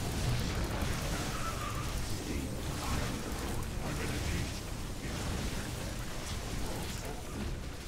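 Laser weapons zap and crackle in a busy battle.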